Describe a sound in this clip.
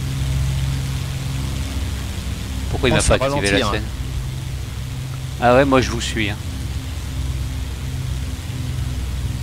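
A propeller plane's engine drones steadily.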